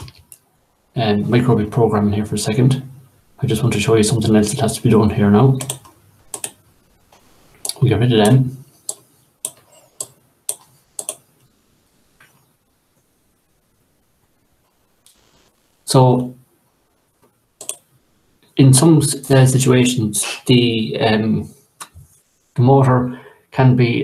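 A man talks calmly through a microphone, as on an online call.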